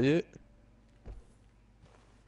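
A car door swings open with a soft click.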